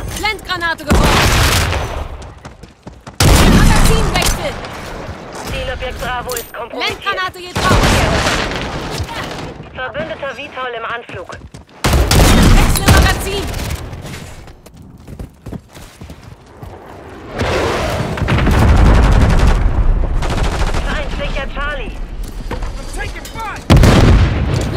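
Loud rifle shots boom, each followed by a ringing echo.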